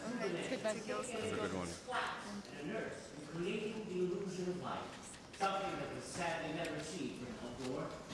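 Young women laugh and chatter excitedly close by.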